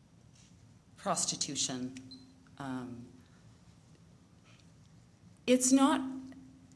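A woman speaks calmly into a microphone, with short pauses.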